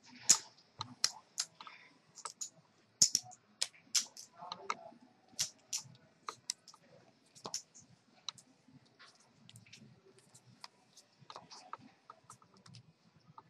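Playing cards snap and slide across a felt table.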